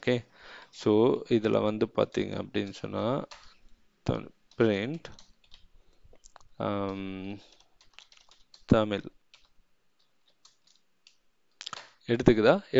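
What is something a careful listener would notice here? Computer keys click as a man types.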